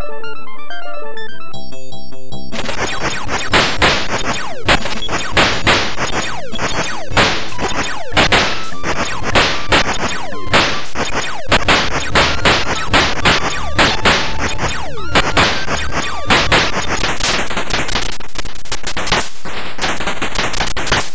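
Cheerful electronic game music plays with beeping tones.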